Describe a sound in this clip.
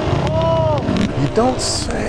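A man speaks nearby over the engine noise.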